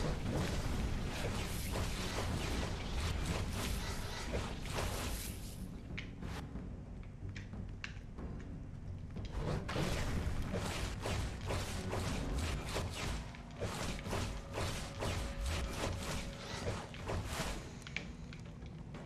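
Sword clashes and magic blasts ring out in a video game fight.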